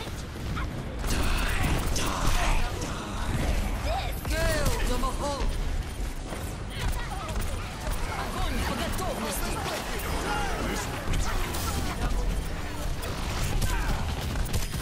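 Video game guns and energy weapons fire in bursts.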